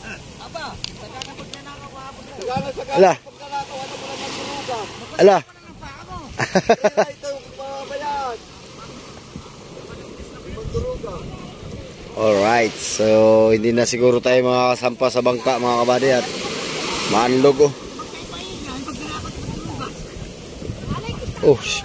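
Small waves splash and wash onto the shore.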